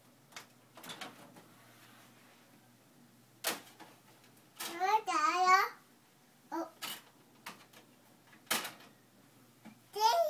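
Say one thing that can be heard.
A toddler taps and knocks on a hard box.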